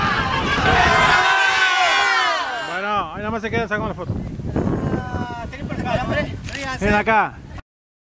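A group of men and women cheer and shout loudly outdoors.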